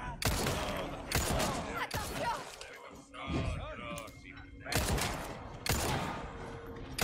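Gunshots fire with loud, booming echoes.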